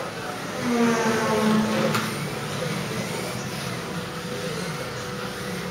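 Small electric model cars whir around a track.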